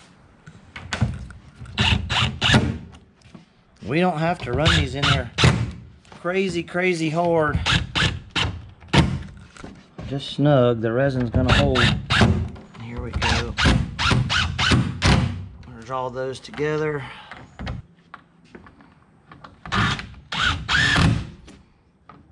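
A cordless drill whirs in short bursts as it drives screws.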